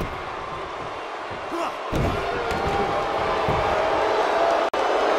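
A crowd cheers and roars steadily in a large hall.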